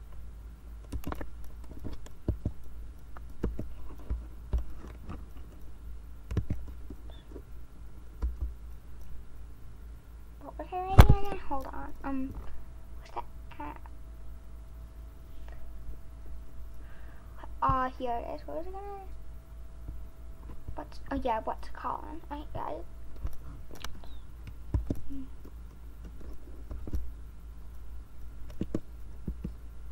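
Computer keys click in quick, uneven bursts of typing.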